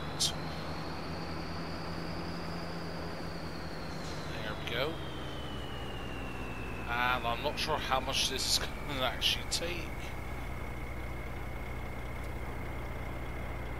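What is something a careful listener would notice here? A tractor engine idles with a low, steady hum.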